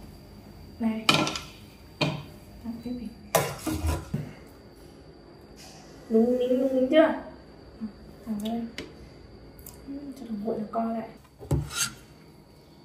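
A metal ladle clinks against a metal pot.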